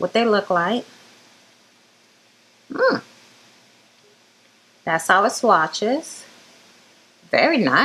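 A woman speaks with animation close to a microphone, in short bursts with pauses.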